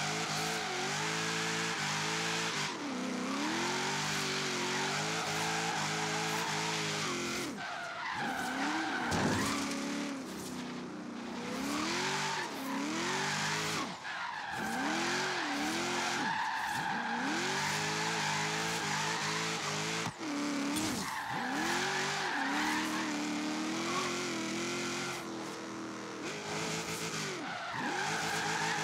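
A car engine roars loudly, revving up and down as gears change.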